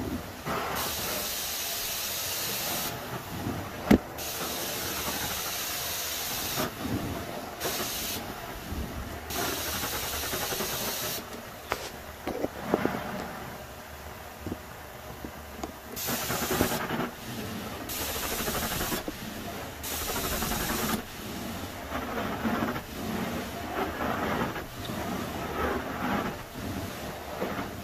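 A carpet cleaning wand sucks water from carpet with a loud, steady hiss that comes and goes with each stroke.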